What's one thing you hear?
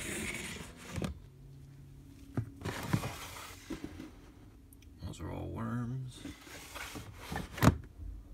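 A plastic drawer knocks shut.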